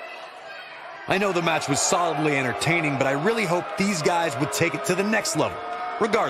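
A large crowd cheers in a big arena.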